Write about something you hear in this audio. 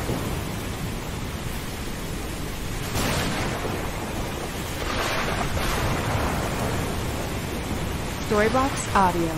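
Waves churn and roar on a stormy sea.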